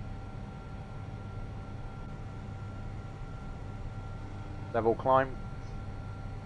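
A jet airliner's engines drone steadily.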